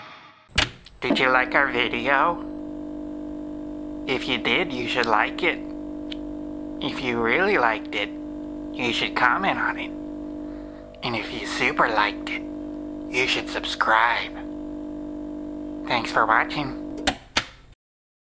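A man speaks playfully in short bursts through a television speaker.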